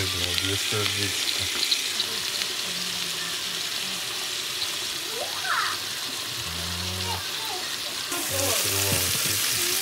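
Meat sizzles in hot oil.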